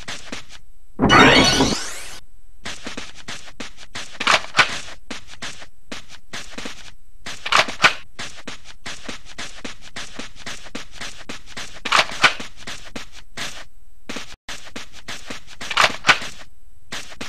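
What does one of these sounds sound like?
A short bright chime rings several times as items are picked up.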